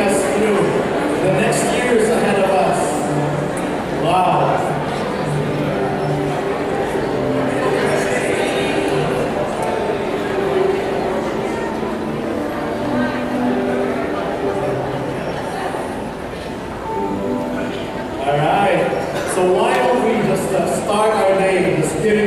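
A man sings lead through a microphone.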